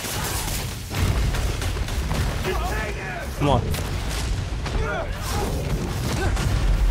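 Loud game combat sounds of blows and explosions rumble throughout.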